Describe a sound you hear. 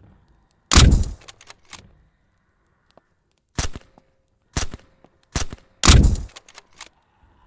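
Rifle shots ring out sharply, several times.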